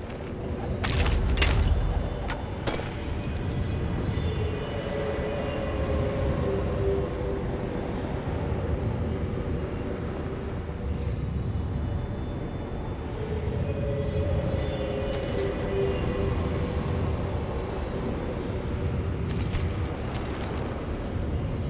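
Soft interface clicks sound as game menu items are selected.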